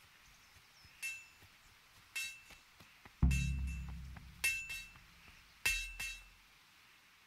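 A hammer strikes metal on an anvil with a ringing clang.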